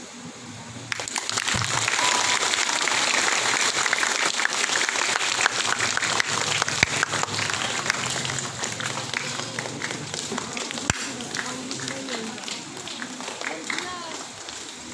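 A large crowd applauds and cheers in an echoing hall.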